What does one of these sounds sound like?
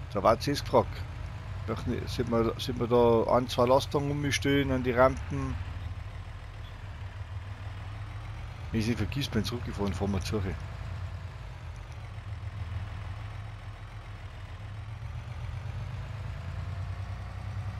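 A truck engine hums low and steady as it drives.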